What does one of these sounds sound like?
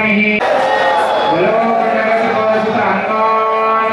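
A group of men chant together in unison.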